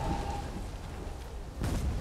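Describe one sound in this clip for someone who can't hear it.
A fire crackles close by.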